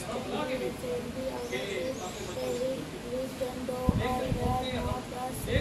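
A young girl reads aloud nearby, in a steady, sing-song voice.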